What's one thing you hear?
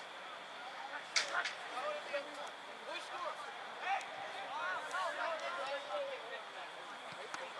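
Young players and onlookers shout and call out across an open field outdoors.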